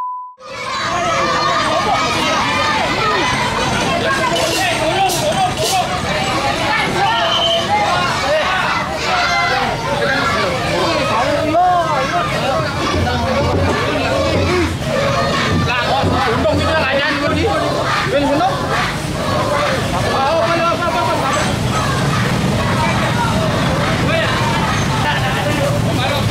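A crowd of men talks and shouts loudly nearby, outdoors.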